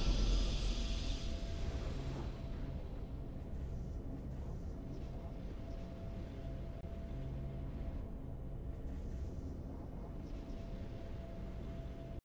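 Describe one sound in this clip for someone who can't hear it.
A triumphant fanfare rings out and then fades into soft, steady music.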